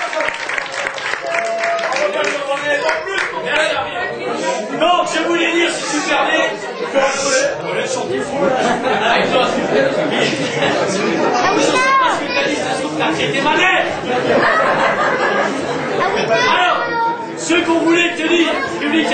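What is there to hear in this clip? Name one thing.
Acoustic guitars strum a lively tune.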